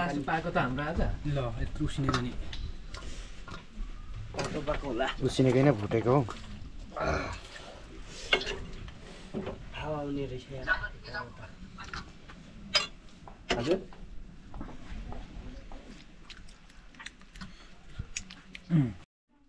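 A metal spoon clinks and scrapes against a steel plate.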